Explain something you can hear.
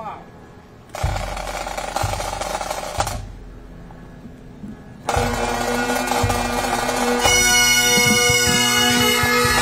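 A bass drum and snare drums beat loudly outdoors.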